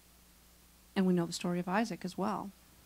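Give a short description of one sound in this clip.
A middle-aged woman speaks with feeling through a microphone in a large room.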